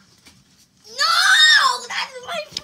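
A young boy shouts loudly.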